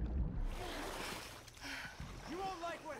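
Water splashes as a swimmer moves through it.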